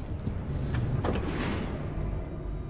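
Heavy metal doors slide shut with a whoosh.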